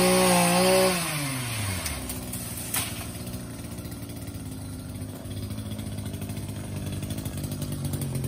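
A small saw engine revs high, then winds down and runs on at a low, steady idle.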